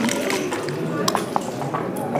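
A game clock button clicks once.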